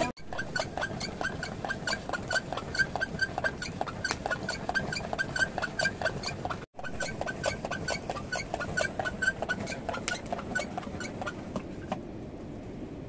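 A wooden plunger churns liquid in a plastic churn with quick, rhythmic sloshing thumps.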